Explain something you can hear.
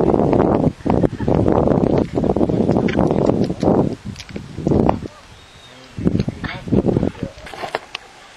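A seabird chick gives loud, rasping squawks close by.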